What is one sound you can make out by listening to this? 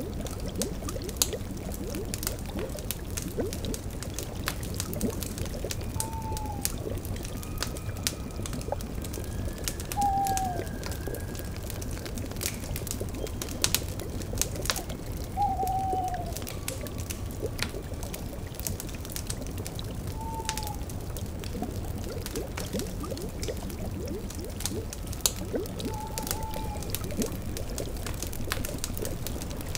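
A fire crackles and pops steadily.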